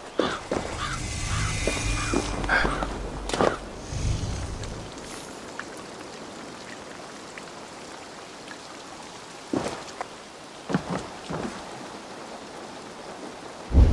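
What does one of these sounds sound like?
Footsteps crunch on stone and earth.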